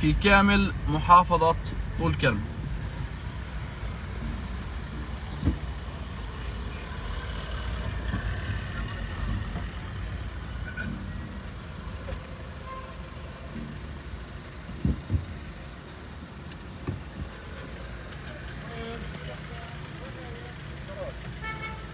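Tyres roll and bump over a rough road.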